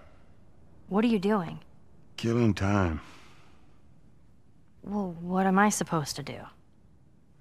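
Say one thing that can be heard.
A young girl asks questions in a clear voice.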